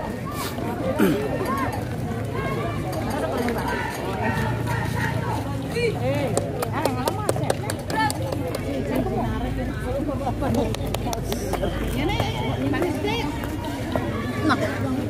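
Many feet march in step on pavement outdoors.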